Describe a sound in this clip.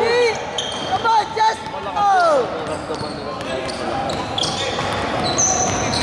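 A basketball bounces on a wooden floor as a player dribbles.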